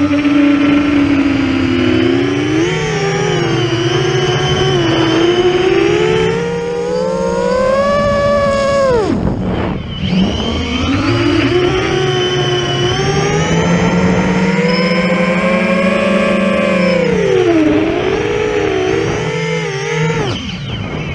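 A small drone's motors whine loudly, rising and falling in pitch as it swoops and dives.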